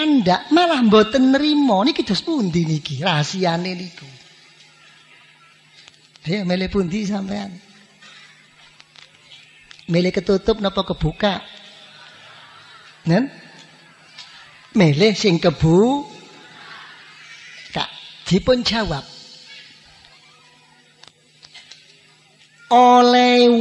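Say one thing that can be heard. An elderly man speaks in short bursts through a microphone, with pauses between.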